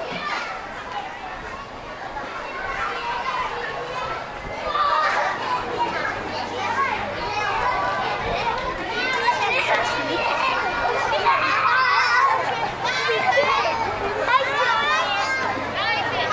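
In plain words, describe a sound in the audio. A crowd of people chatters outdoors, growing louder.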